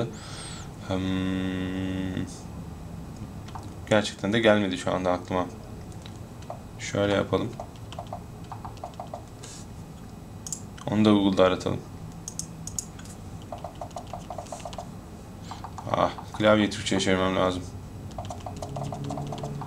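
Fingers tap quickly on a keyboard.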